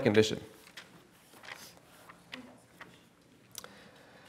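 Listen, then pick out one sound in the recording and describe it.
Pages of a book rustle.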